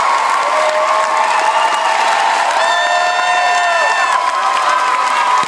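A large crowd cheers and chants loudly in an echoing hall.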